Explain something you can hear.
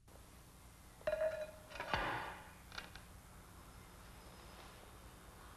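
A hand presses a tile into soft adhesive with a faint scrape.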